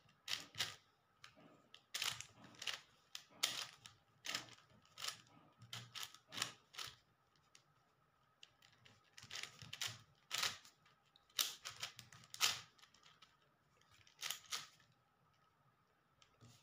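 A plastic puzzle cube clicks and clacks as its layers are turned quickly.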